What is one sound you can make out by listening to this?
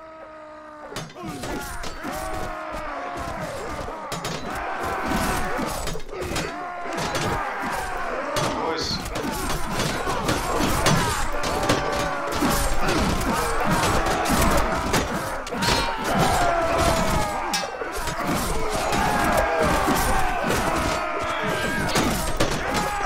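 Weapons clash and bang on shields in a battle.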